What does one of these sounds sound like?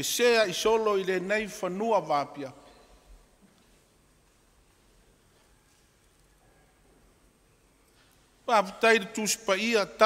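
An elderly man speaks slowly and solemnly through a microphone, with long pauses.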